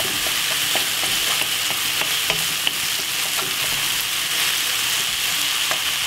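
A wooden spatula scrapes and taps against a pan.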